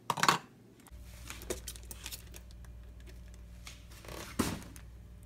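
A coffee maker hums steadily.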